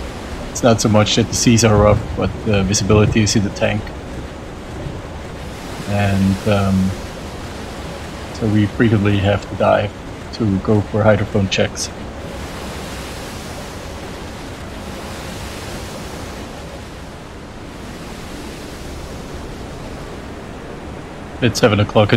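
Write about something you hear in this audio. Rough sea waves crash and splash against a ship's bow.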